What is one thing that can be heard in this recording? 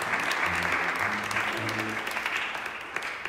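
A brass band plays a loud held chord in an echoing hall.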